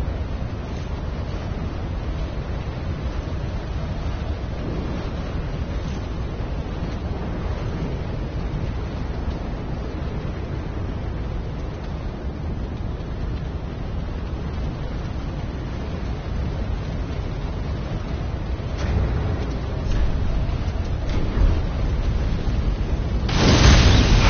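Wind howls steadily through falling snow.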